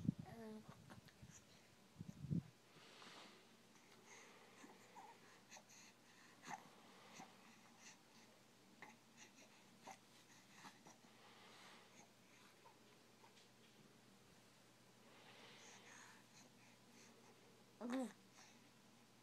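A baby coos softly close by.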